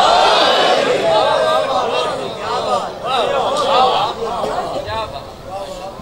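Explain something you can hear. A crowd of men calls out together.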